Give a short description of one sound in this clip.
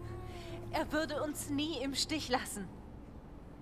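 A young woman speaks softly and closely.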